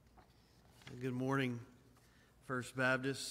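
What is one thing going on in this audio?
A younger man speaks calmly through a microphone.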